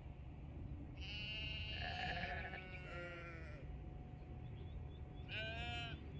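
Sheep bleat loudly nearby.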